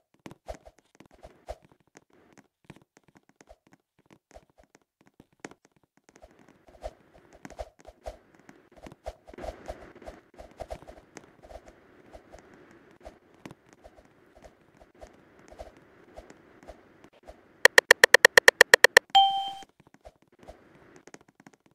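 Footsteps patter steadily.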